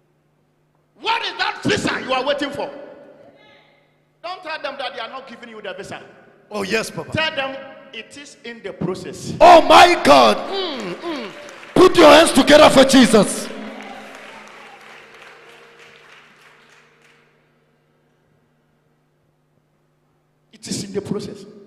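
A man preaches loudly and with passion through a microphone in a large echoing hall.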